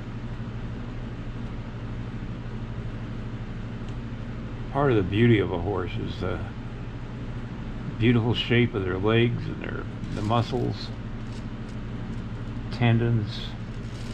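A sculpting tool scrapes softly over oil-based clay.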